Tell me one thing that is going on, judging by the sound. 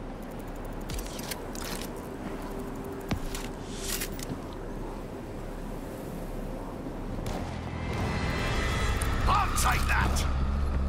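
Metal gear clicks and clatters as ammunition is picked up.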